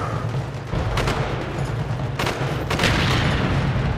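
Rifle shots crack sharply a few times.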